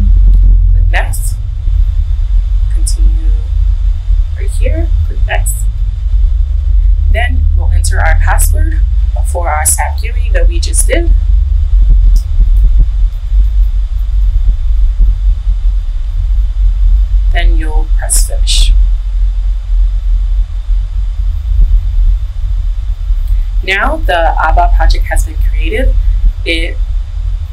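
A young woman talks calmly and clearly into a nearby microphone, in short bursts.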